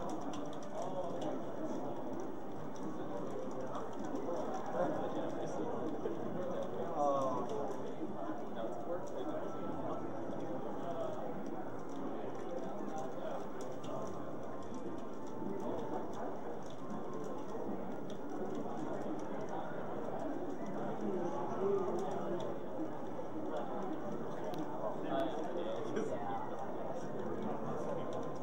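Young men talk and react with excitement nearby.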